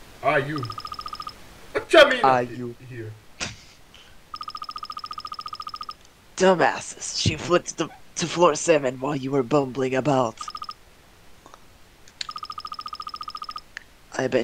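Rapid electronic blips tick in quick bursts.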